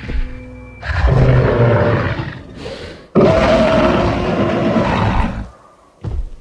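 A large dinosaur roars loudly and deeply.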